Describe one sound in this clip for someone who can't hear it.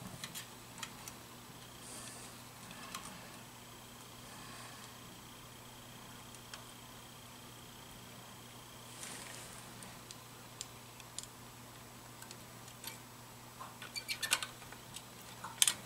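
Metal tools click and scrape against small engine parts.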